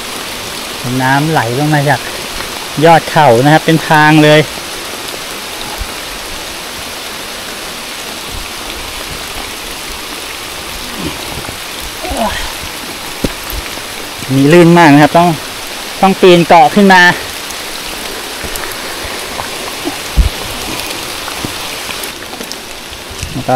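Footsteps crunch on wet leaves and mud.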